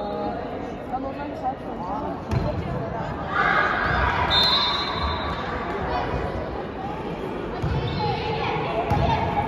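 A volleyball is struck with hands in a large echoing hall.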